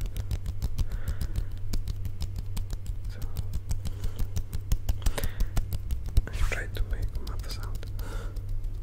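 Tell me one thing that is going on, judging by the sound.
A man whispers softly right into a microphone.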